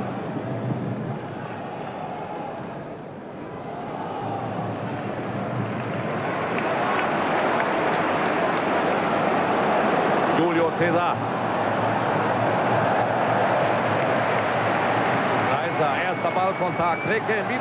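A large stadium crowd roars steadily, rising in excitement.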